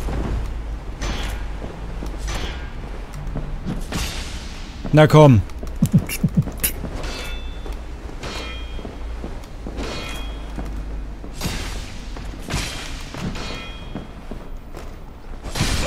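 Metal blades clash and clang repeatedly.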